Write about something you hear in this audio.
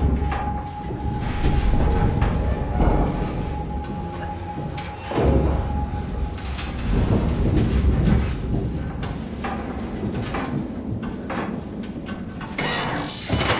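Footsteps clank on a metal grating floor.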